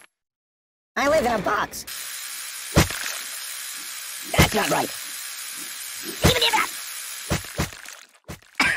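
An electric toothbrush buzzes.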